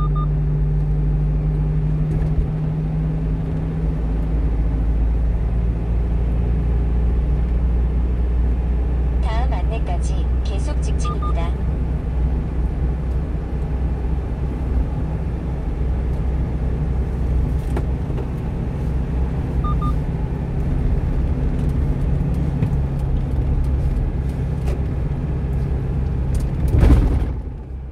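A car engine hums steadily from inside.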